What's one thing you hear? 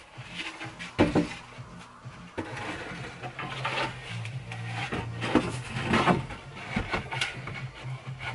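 A wooden panel knocks and scrapes against a wooden frame.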